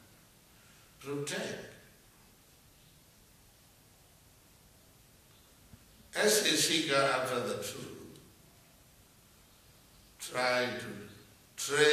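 An elderly man speaks calmly in short bursts close by.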